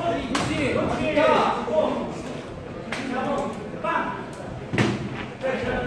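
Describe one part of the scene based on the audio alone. Boxing gloves thud against a boxer's body.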